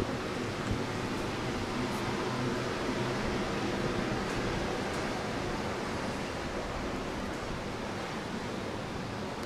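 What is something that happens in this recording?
Passersby murmur faintly in a street outdoors.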